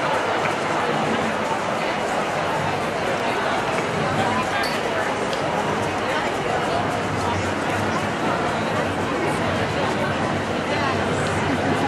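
A large crowd of men and women chatters and calls out outdoors.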